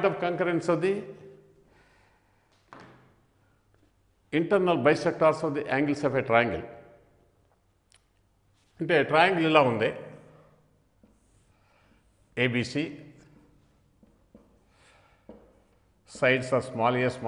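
An elderly man lectures calmly into a close microphone, in bursts with pauses.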